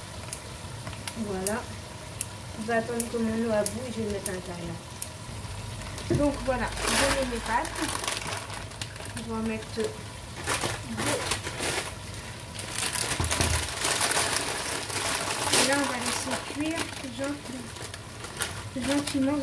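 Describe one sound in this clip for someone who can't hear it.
A plastic packet crinkles and rustles.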